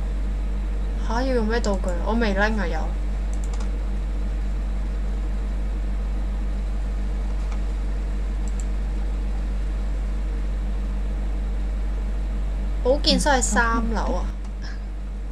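A young woman talks briefly into a close microphone.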